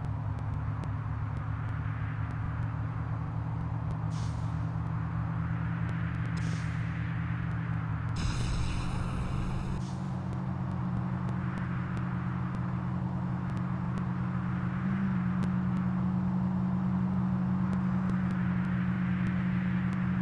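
A car engine hums steadily as a car drives over grass.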